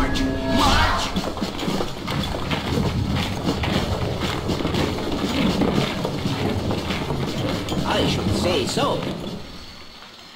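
Video game battle effects clash and clatter rapidly.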